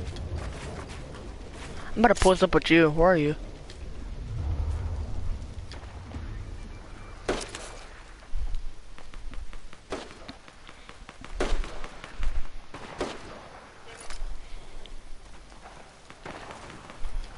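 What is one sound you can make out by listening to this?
Footsteps clatter on a wooden roof.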